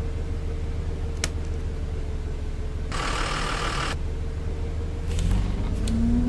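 A bus engine idles with a low hum.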